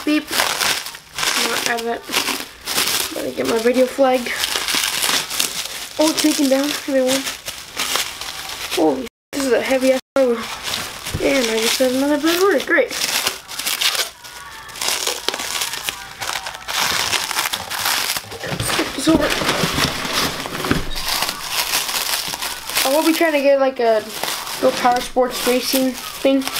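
Plastic wrap crinkles and rustles as hands handle it.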